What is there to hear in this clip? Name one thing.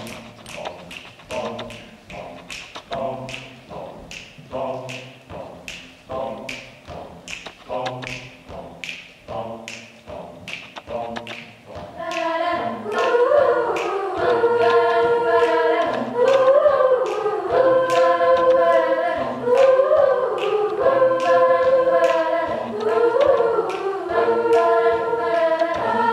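A group of young men and women sings in harmony through microphones.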